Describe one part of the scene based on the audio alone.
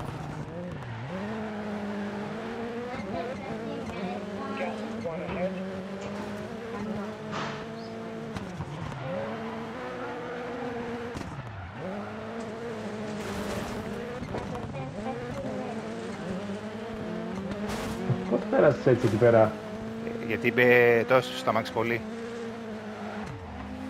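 Tyres skid and scrabble on dirt and tarmac.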